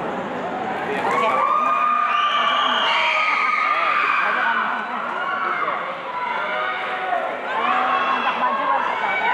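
A woman sings loudly through loudspeakers.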